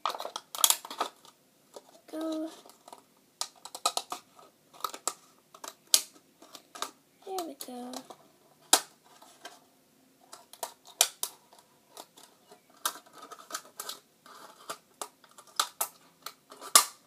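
Thin plastic crinkles and rustles in a hand.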